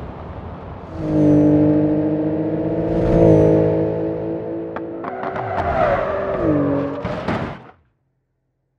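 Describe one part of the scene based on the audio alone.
A sports car engine roars at speed.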